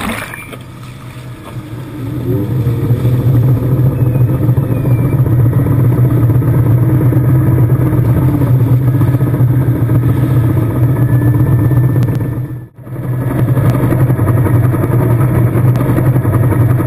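Rough water churns and splashes against a hull.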